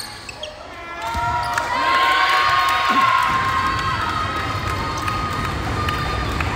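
A crowd cheers and shouts after a point.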